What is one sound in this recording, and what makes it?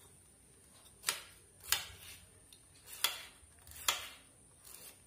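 A knife chops sharply against a cutting board in quick, separate strokes.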